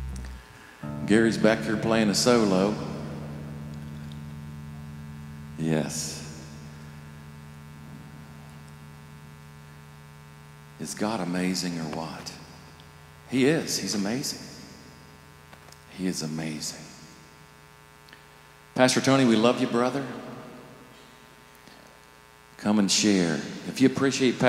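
A middle-aged man speaks with animation through a microphone and loudspeakers in a large echoing hall, in short bursts with pauses.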